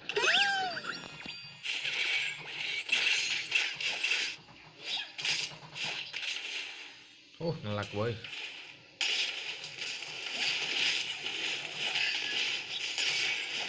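Clashing fight sounds and magical blasts ring out in a busy burst.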